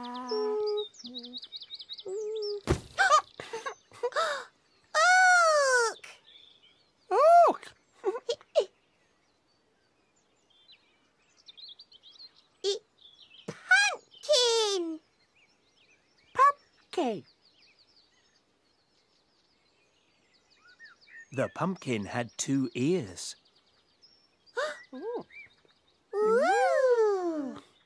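Childlike characters chatter in high, playful voices with squeals and giggles.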